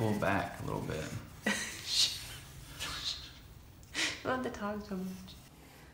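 Pencils scratch on paper.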